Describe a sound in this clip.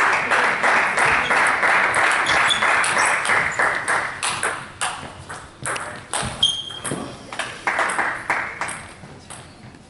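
A table tennis ball clicks sharply back and forth off paddles and the table in a large echoing hall.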